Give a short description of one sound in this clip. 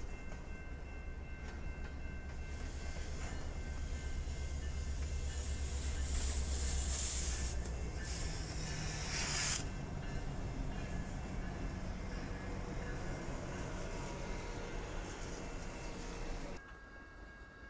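A freight train rumbles past with a deep, throbbing locomotive engine.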